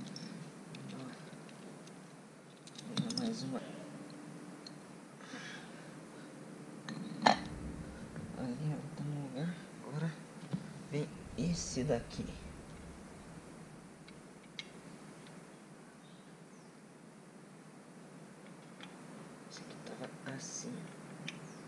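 Metal parts click and clink close by.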